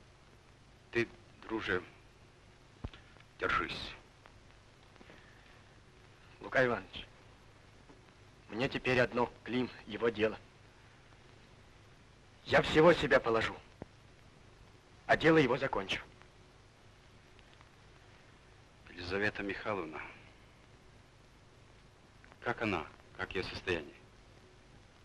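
A young man speaks in short, tense phrases with pauses between them.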